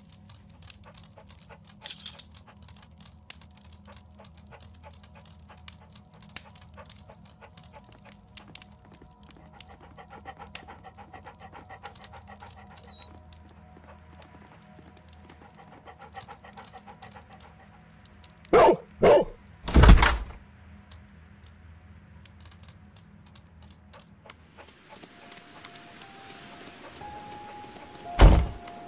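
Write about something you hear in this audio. A dog's paws patter quickly across the floor.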